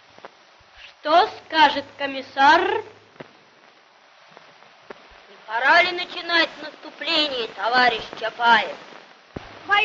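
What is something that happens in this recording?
A young boy calls out loudly with animation.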